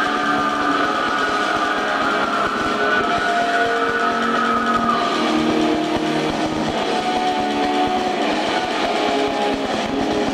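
An electric guitar plays a distorted riff.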